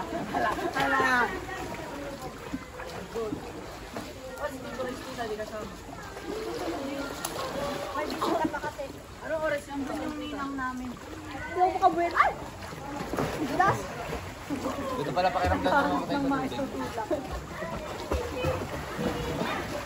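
Children and adults talk and shout nearby, outdoors.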